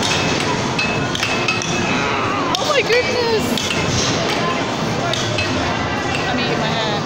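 Arcade machines beep and jingle all around in a noisy hall.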